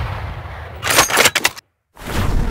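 A rifle fires a sharp, loud shot.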